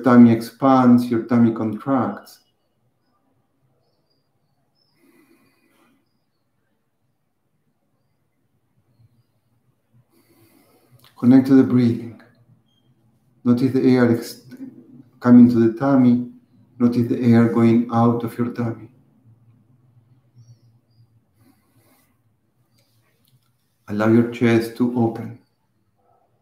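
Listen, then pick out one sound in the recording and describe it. A middle-aged man speaks calmly and slowly close to a microphone, with long pauses.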